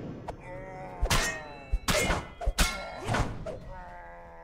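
Weapons strike and clang in a game fight.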